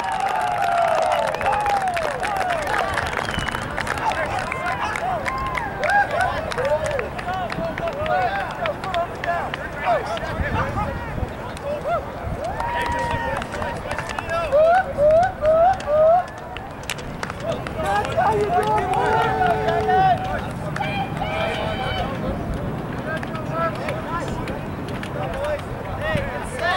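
Young men shout to each other across an open field, far off.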